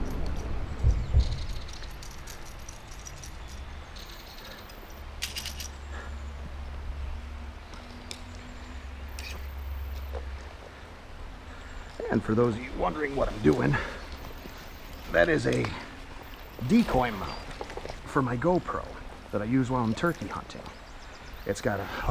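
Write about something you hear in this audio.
Shallow river water ripples and trickles over stones.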